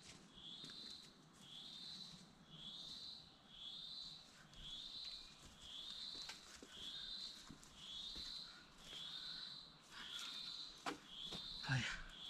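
A man walks through rustling undergrowth.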